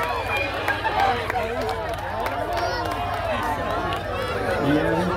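A crowd of adults and children chatters and cheers outdoors.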